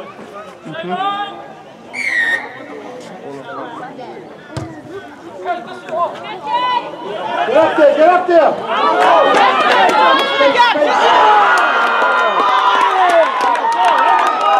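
A man close by calls out to the players.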